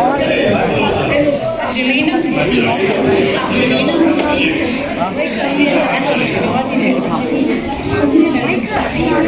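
Children chatter and call out in the background.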